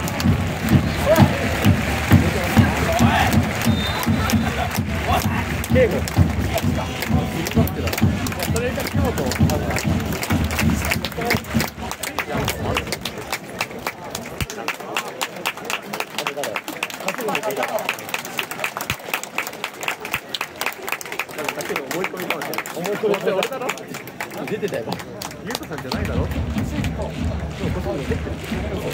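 A large stadium crowd chants loudly outdoors.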